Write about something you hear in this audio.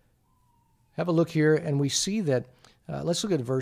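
A middle-aged man reads aloud calmly, close to a microphone.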